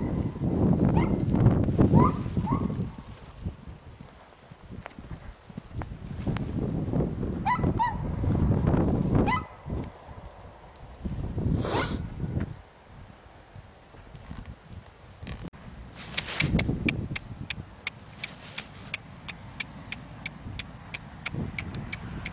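A horse's hooves thud on soft dirt as it trots and canters.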